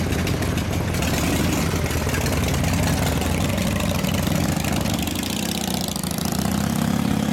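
A motorcycle engine revs and pulls away.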